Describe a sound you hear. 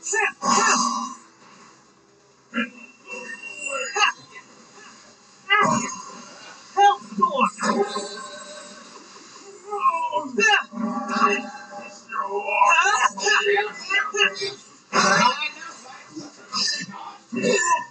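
Energy blasts whoosh and crackle in a video game fight.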